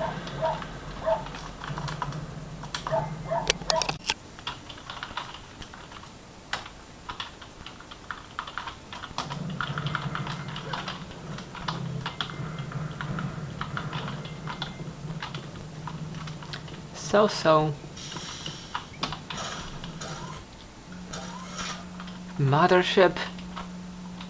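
Keys on a computer keyboard click and clatter quickly.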